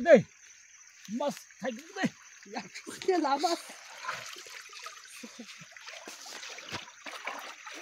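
Water splashes as a man wades and sweeps a net through a shallow stream.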